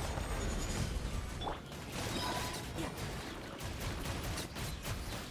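Explosive magical blasts crackle and boom in a fast fight.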